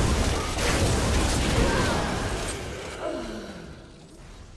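Game spells and blows crash and crackle in a fierce fight.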